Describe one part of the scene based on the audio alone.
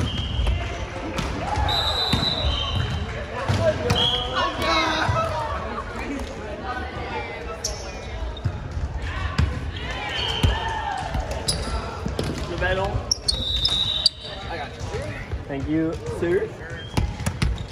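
Young men and women talk and call out across an echoing gym.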